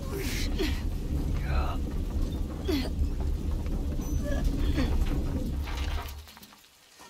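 A heavy cart rumbles and rattles along metal rails.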